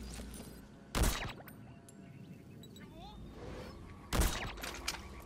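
A suppressed rifle fires a sharp shot.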